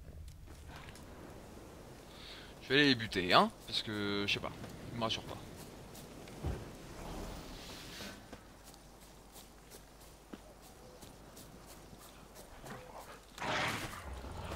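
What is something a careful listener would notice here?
Footsteps run quickly through grass and undergrowth.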